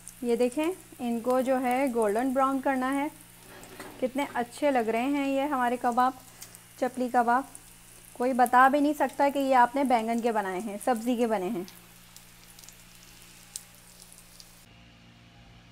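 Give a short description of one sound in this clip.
Oil sizzles and spits in a hot frying pan.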